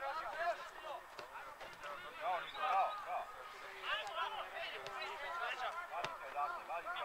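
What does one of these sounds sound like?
A football is kicked with dull thuds on grass.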